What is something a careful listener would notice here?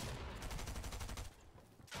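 A gun fires in short bursts.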